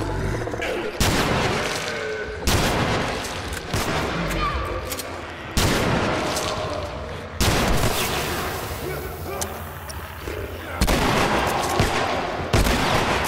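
Loud gunshots ring out one at a time, echoing.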